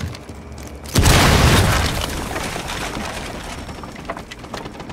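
A loud explosion booms and its roar slowly dies away.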